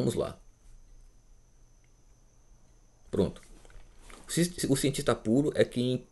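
A man speaks close by, pausing, then reading out with animation.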